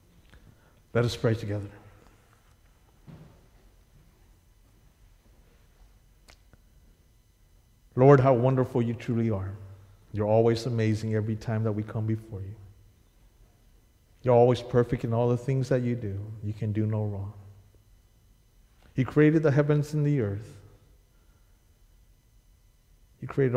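A man speaks slowly and calmly into a microphone, with long pauses, in an echoing hall.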